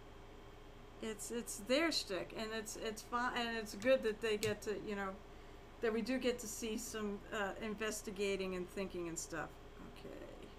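A woman speaks casually into a nearby microphone.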